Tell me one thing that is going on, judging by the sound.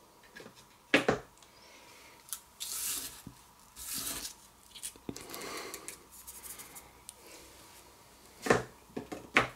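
A small model base knocks lightly against a hard surface.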